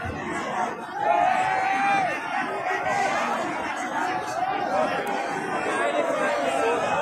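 Men cheer loudly nearby.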